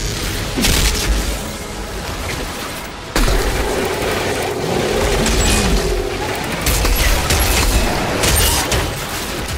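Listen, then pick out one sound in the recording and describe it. A large creature roars in a video game.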